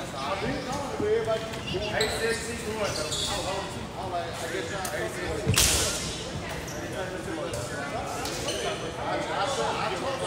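Young men talk and call out in a large echoing gym.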